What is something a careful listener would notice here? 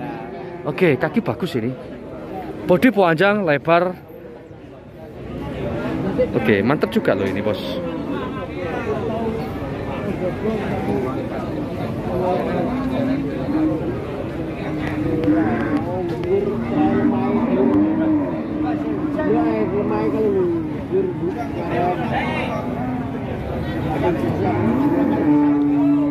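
A crowd of men chatters all around, outdoors.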